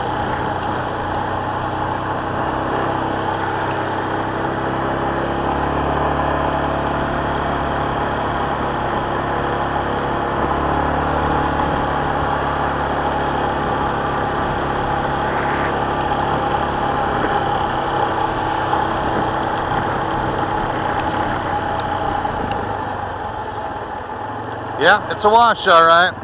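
An engine hums steadily as a quad bike rides along.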